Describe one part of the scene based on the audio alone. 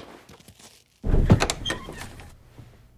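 A heavy door bangs open.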